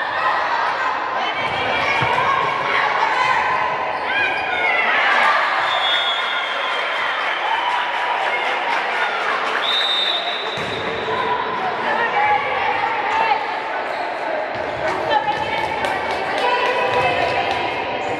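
Voices of players and spectators echo through a large hall.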